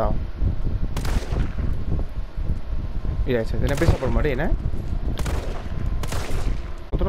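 A pistol fires several sharp shots.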